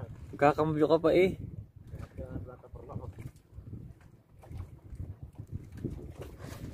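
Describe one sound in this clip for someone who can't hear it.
Water splashes against the hull of a moving boat.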